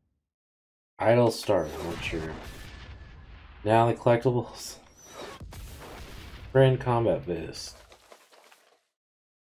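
A middle-aged man talks with animation, close to a microphone.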